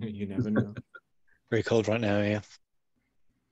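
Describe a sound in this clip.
A young man laughs over an online call.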